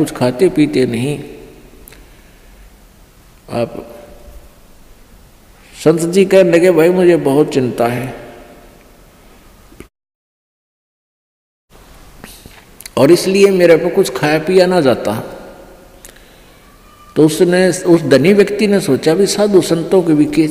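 An elderly man speaks calmly and deliberately into a close microphone, with pauses.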